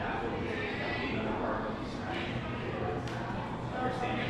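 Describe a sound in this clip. Several adults talk nearby in a large echoing hall.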